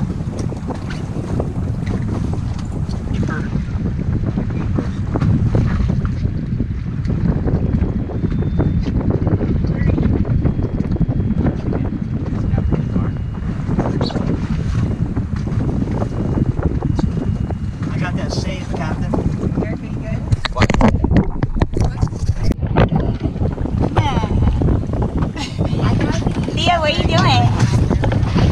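Wind blows hard and rumbles outdoors at sea.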